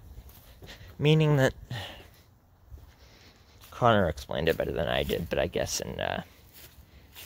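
A young man speaks close by, with animation.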